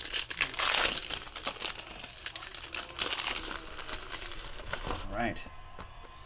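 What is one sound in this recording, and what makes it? Plastic wrapping crinkles and tears as a pack is opened.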